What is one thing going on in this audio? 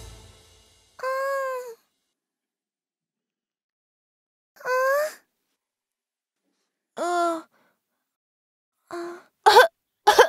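A young child's cartoon voice whimpers and speaks plaintively.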